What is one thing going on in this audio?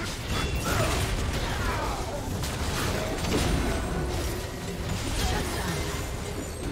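Spell effects whoosh and crackle in a fast game fight.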